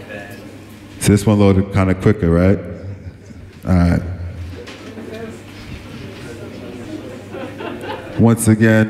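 A man speaks loudly into a microphone over a loudspeaker.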